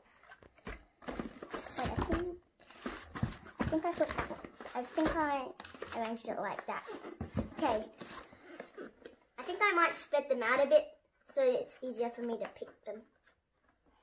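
A young child talks with animation close by.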